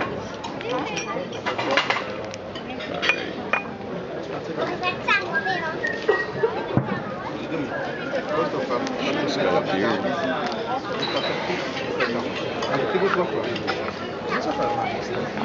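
A crowd of men and women chatters and talks outdoors.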